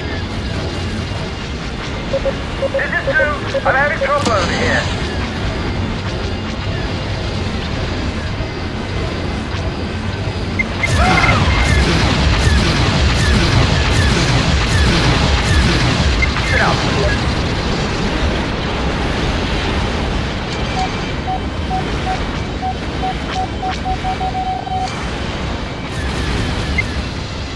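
A spacecraft engine hums steadily.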